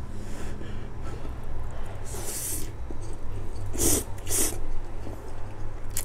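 A young man slurps noodles loudly, close to the microphone.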